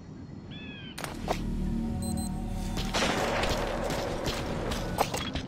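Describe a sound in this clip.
Footsteps rustle through dry grass and brush.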